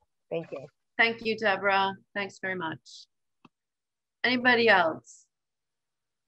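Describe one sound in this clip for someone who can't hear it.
A middle-aged woman talks calmly over an online call.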